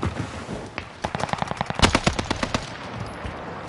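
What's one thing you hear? A rifle fires a burst of sharp shots.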